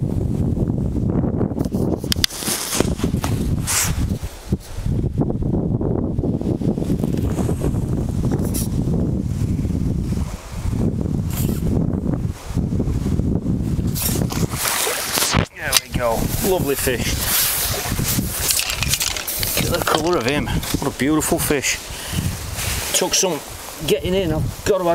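Wind rumbles and buffets outdoors.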